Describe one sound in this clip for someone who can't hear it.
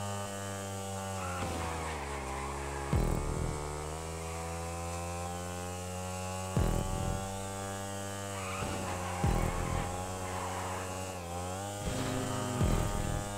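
A motorcycle engine revs steadily, its pitch rising and falling with gear changes.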